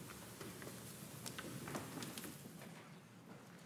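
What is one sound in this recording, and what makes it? Wooden pews knock and creak as people sit down.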